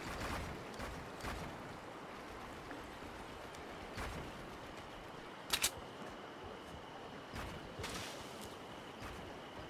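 Building pieces snap into place with short, sharp thuds.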